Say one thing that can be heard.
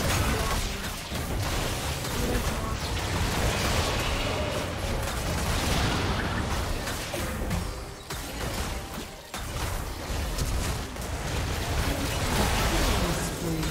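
Spell effects and attacks crackle and clash in a fast battle.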